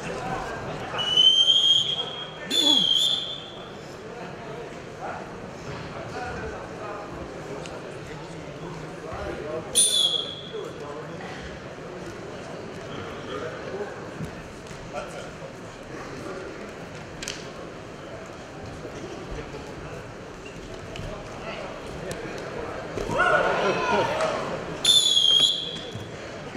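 A referee blows a whistle in sharp short blasts.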